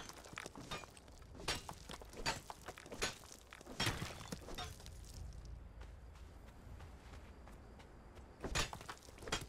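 Footsteps crunch on dry gravel.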